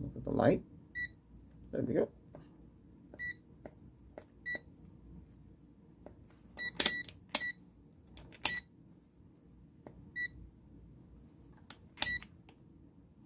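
A device beeps with short high tones.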